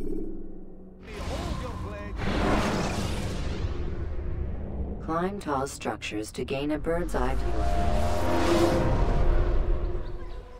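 A soft whooshing rush swells and fades.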